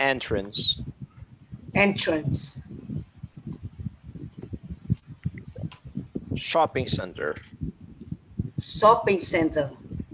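A man speaks clearly over an online call, in short phrases with pauses.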